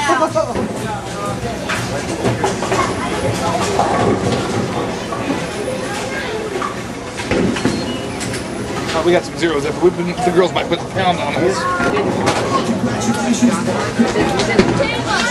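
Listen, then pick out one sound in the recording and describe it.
Bowling pins clatter and crash in the distance.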